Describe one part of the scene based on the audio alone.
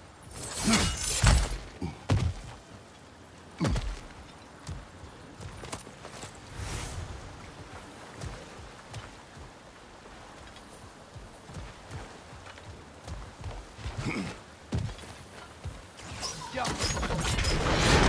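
Heavy footsteps crunch on gravel and thud on wooden planks.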